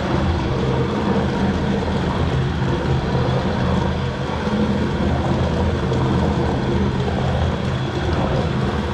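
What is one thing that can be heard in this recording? A meat mixing machine hums and churns steadily.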